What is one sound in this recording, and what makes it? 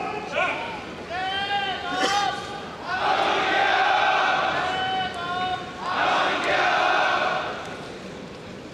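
Male judo fighters shout loudly while grappling.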